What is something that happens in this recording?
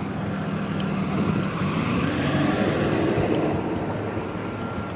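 A heavy truck drives past.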